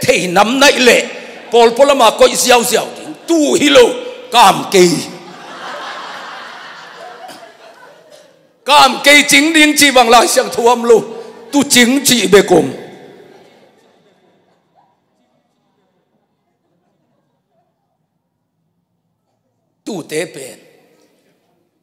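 A middle-aged man speaks with animation into a microphone, heard through loudspeakers in an echoing hall.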